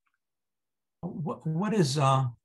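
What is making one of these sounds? An older man speaks over an online call.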